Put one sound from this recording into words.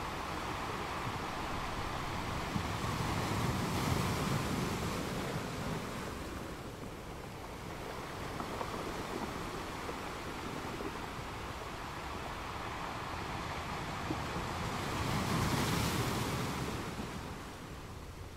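Waves crash and break on rocks, swelling and fading in a steady roar.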